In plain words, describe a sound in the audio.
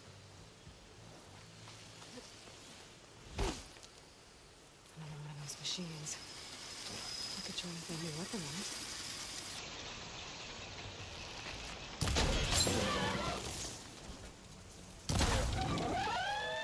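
Fires crackle nearby.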